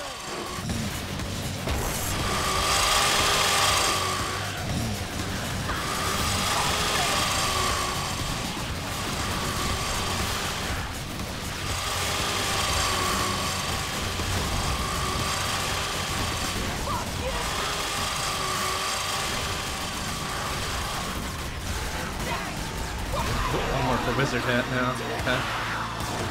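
Video game gunfire and explosions crackle rapidly.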